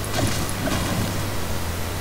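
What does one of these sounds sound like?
A pickaxe swings and strikes with dull knocks.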